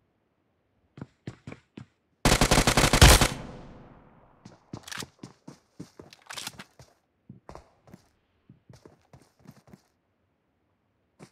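Footsteps crunch over grass and ground.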